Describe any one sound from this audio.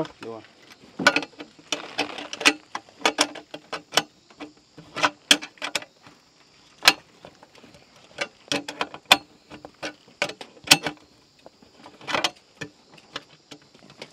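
Metal parts clink and tap as they are fitted together.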